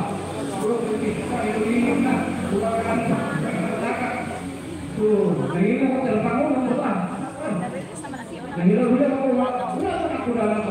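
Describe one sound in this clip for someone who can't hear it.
A middle-aged woman talks calmly, close to a phone microphone.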